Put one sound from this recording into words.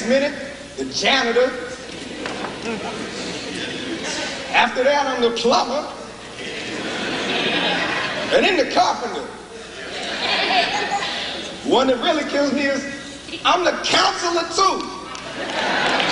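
A man speaks loudly and dramatically, with long pauses.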